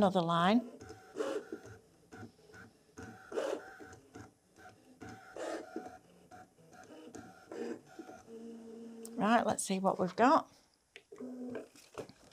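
A middle-aged woman speaks calmly and clearly into a nearby microphone.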